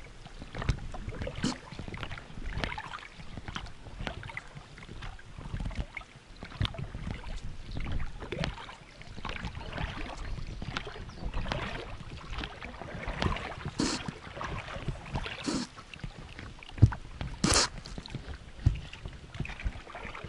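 Water splashes and slaps against the side of a small boat.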